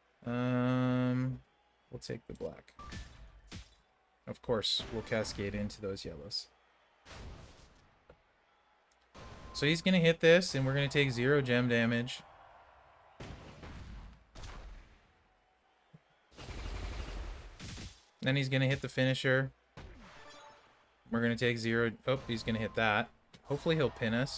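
Game sound effects thud and chime.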